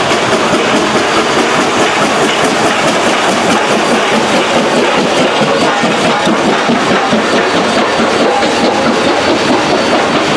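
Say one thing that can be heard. Steel wheels rumble and clack over rail joints as train cars roll past.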